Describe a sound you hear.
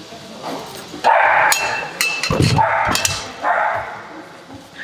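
A metal bench clanks as it is moved.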